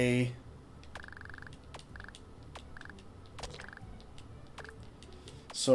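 Short electronic blips sound in quick succession.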